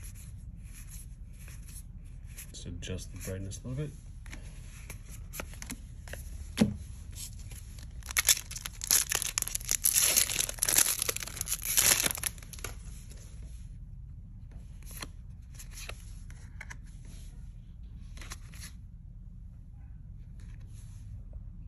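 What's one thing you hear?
Playing cards slide and flick against each other.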